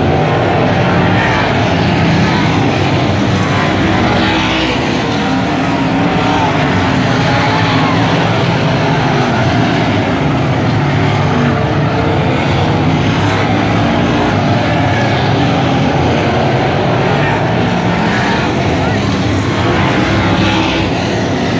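Race car engines rev up and down as cars pass close by.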